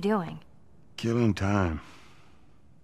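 A man answers in a low, relaxed voice.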